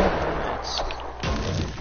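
A pickaxe thuds against wooden walls.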